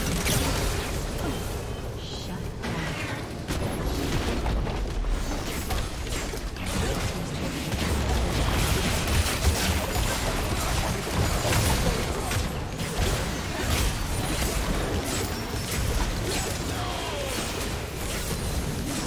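Game spell effects whoosh, crackle and burst in a fast battle.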